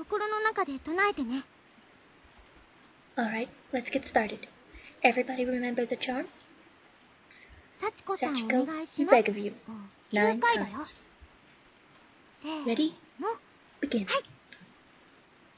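A young woman reads aloud with animation, close to a microphone.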